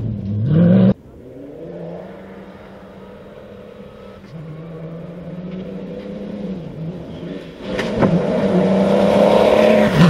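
A second rally car's engine growls as it approaches and speeds by.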